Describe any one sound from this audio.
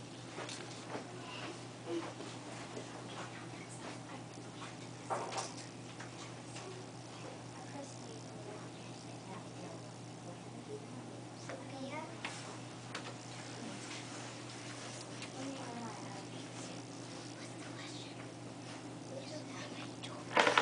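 A woman speaks calmly to a group of children.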